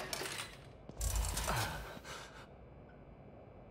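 A man's heavy footsteps thud on a wooden floor.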